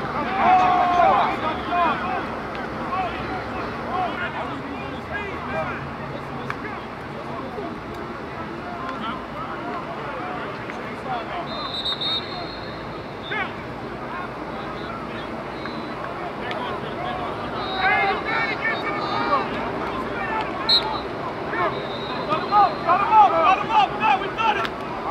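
Several men shout and call out outdoors in an open field.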